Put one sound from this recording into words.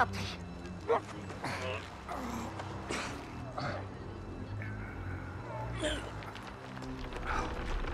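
A man grunts and strains close by.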